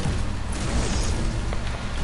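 A pickaxe thuds against wood in quick strikes.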